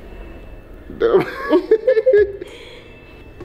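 A man laughs softly close by.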